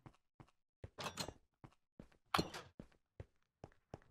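A heavy metal door clanks open.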